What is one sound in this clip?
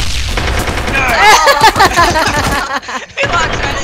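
A woman laughs loudly into a microphone.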